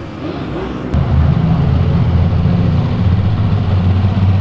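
An old car engine rumbles deeply as it pulls away.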